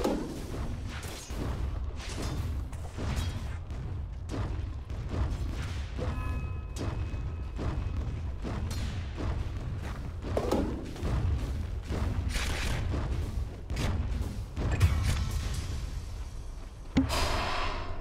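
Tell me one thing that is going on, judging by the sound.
Weapons clash and spells burst in a busy fantasy battle.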